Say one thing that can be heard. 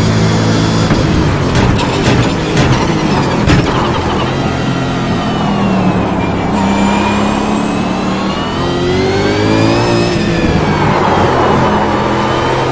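A racing car engine roars, its pitch rising and falling as it speeds up and slows down.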